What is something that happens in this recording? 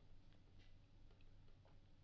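A young woman sips a drink through a straw close to a microphone.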